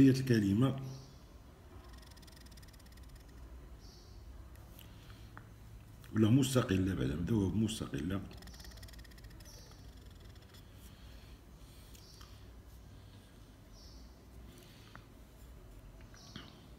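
A pen nib scratches softly across paper in slow strokes.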